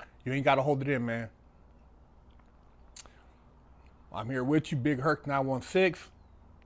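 A man speaks calmly and close up into a clip-on microphone, pausing between phrases.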